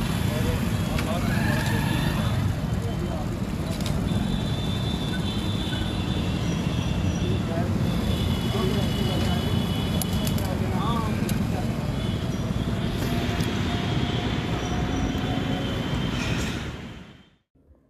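A man talks loudly outdoors.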